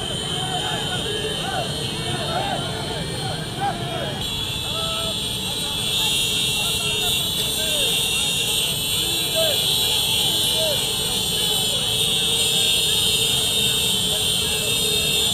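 Many small motorcycles buzz past in a dense procession.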